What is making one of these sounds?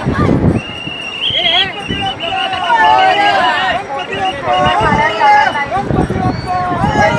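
A crowd of men shouts and chants loudly close by, outdoors.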